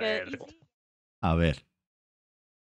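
A young man laughs through a headset microphone.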